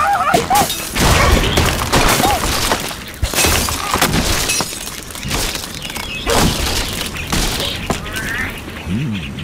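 Blocks crash and clatter as a tower collapses.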